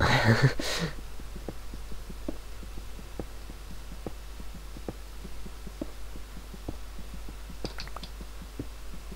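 A pickaxe taps rapidly against stone.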